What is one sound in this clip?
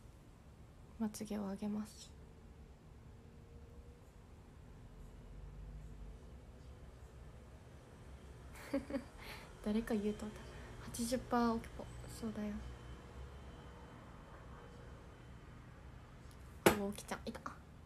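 A young woman speaks softly and close by in short bursts.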